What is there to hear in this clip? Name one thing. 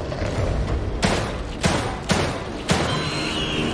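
Pistol shots fire in quick succession.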